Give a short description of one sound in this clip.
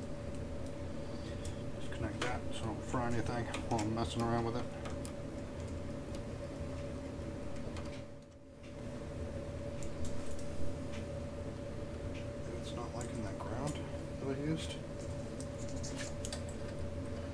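Small tools click and tap against metal.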